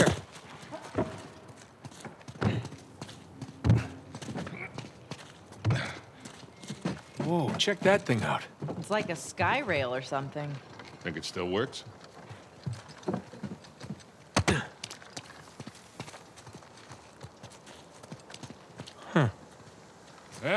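Footsteps run across stone and wooden planks.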